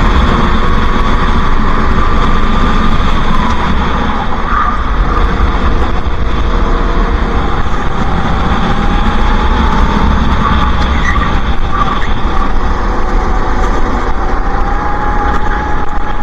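A kart engine buzzes loudly close by, its pitch rising and falling with the throttle.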